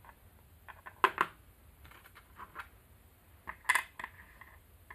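A wooden game piece clacks and slides on a board.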